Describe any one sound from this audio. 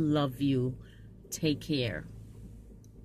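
A woman speaks briefly, close to a phone microphone.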